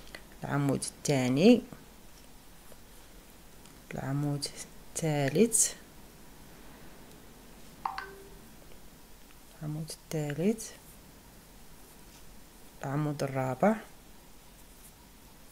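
A crochet hook softly works through yarn.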